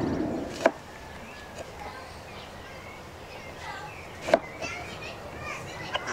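A knife chops through oranges on a wooden board.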